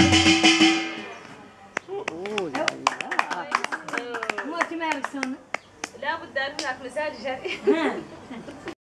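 Several women sing together nearby.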